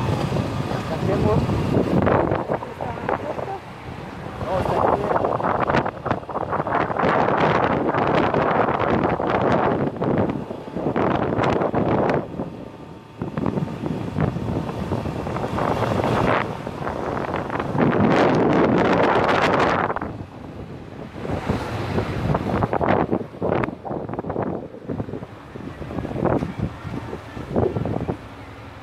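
Wind roars loudly past a microphone on a moving motorcycle.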